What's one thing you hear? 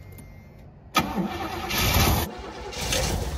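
A car engine cranks and starts.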